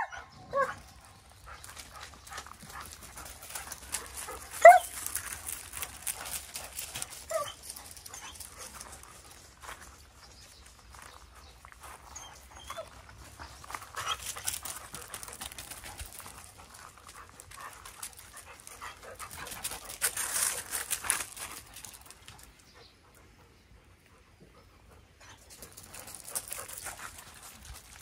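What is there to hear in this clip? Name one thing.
Dogs' paws crunch on gravel.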